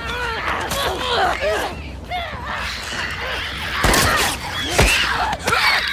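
Heavy blows thud during a close struggle.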